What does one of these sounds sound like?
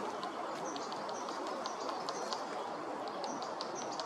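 A woodpecker taps its beak against a tree branch.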